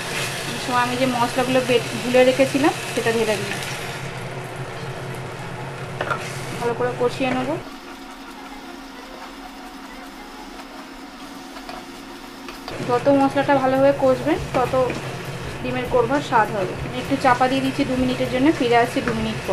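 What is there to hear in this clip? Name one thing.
A wooden spoon scrapes and stirs in a metal pan.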